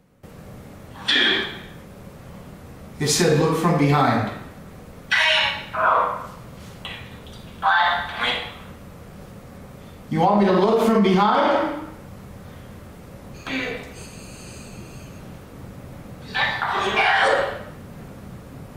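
A young man speaks close into a microphone in short bursts.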